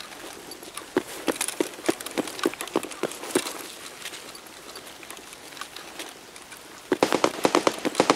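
Footsteps crunch on gravel and rubble at a steady walking pace.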